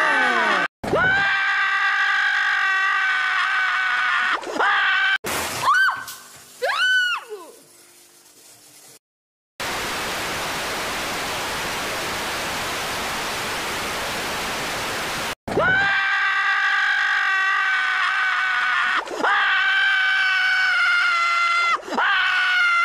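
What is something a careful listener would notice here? A loud, shrill cartoon scream blares from a laptop game, breaking off and starting again.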